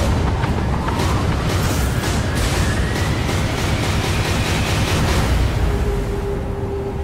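A fierce storm wind roars over the sea.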